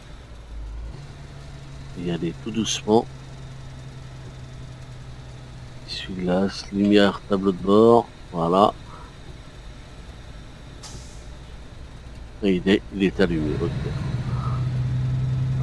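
A heavy diesel truck's engine drones as the truck drives.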